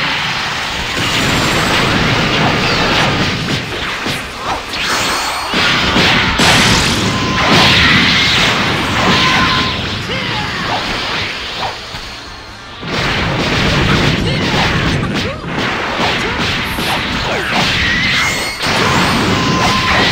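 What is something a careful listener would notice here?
Energy blasts roar and crackle in a video game fight.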